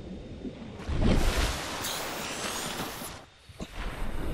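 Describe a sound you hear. Water splashes and gurgles as a swimmer breaks the surface.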